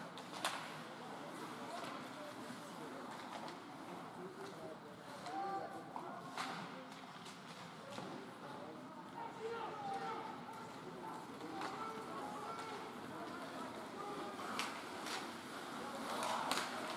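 Spectators talk nearby.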